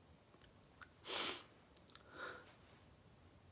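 A man breathes out heavily close to a microphone.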